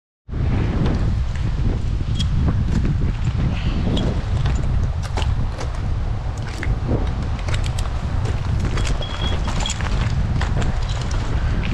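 Metal climbing gear clinks and rattles now and then.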